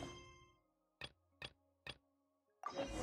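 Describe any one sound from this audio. Menu buttons click softly several times.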